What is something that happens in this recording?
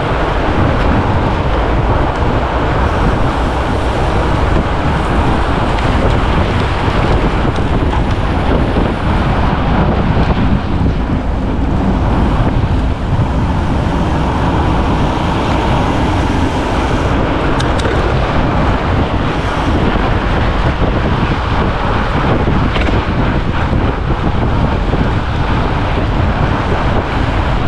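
Fat bike tyres crunch over packed snow.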